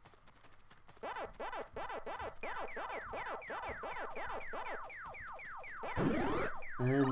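Rapid electronic game blips and chirps play quickly.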